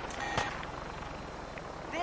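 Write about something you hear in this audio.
A helicopter's rotors thrum overhead.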